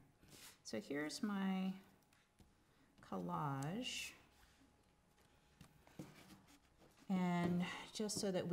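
A woman speaks calmly and close by, with pauses.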